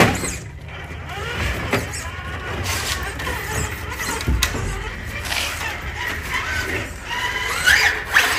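A small electric motor whirs as a toy truck crawls over rocks.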